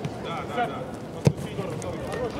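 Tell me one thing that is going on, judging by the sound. A football is kicked with a hard thud.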